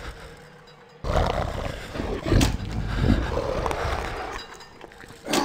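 A creature snarls and growls close by.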